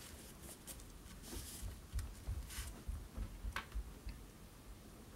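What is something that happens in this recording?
Hands press and smooth paper with soft thumps and rustles.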